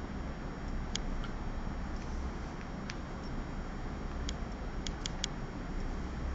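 A paintbrush taps and clinks against a palette.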